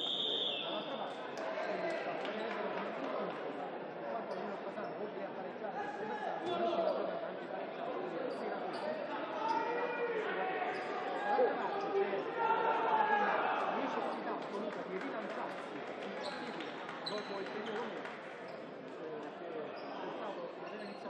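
A crowd of spectators chatters and cheers in a large echoing sports hall.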